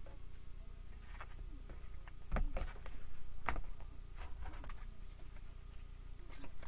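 Playing cards are shuffled and tap together close by.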